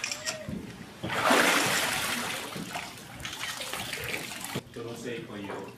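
Water splashes loudly as a person is dipped into a pool.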